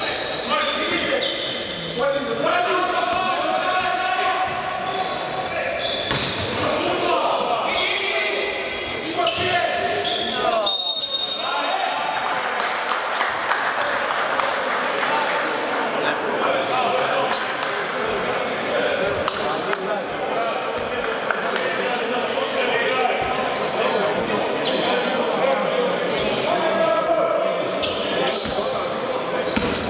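A crowd of spectators chants and cheers loudly in a large echoing hall.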